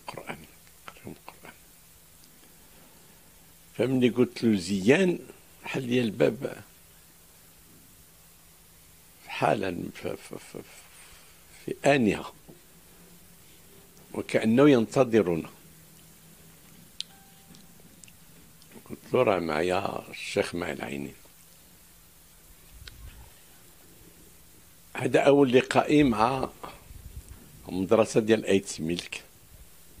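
An elderly man speaks calmly into a close microphone, in bursts with long pauses.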